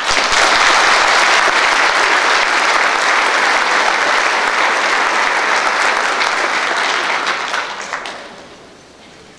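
An audience applauds loudly in a large hall, then the applause fades.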